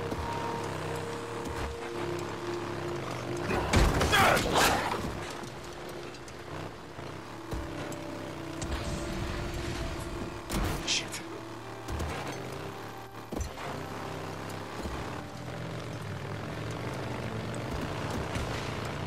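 Tyres crunch over dirt and gravel.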